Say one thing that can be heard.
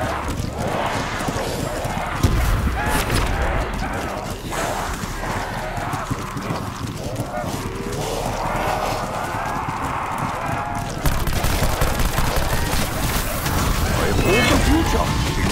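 Rapid gunfire bursts loudly and close.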